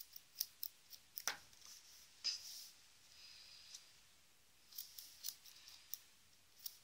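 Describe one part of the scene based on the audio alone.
A small plastic doll taps and clicks lightly against a hard surface.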